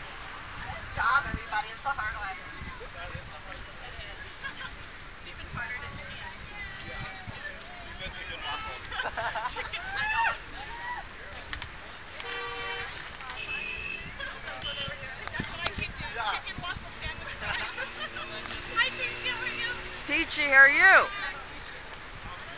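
A crowd of men and women shout and cheer outdoors.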